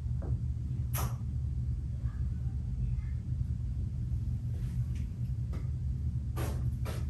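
A spray bottle hisses in short bursts a little way off.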